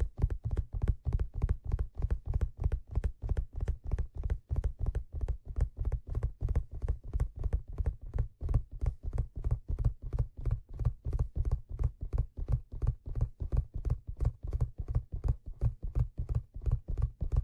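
Fingers tap and drum rapidly on a leather hat, close to a microphone.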